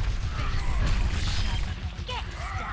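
Quick whooshing bursts rush past as a game character dashes forward.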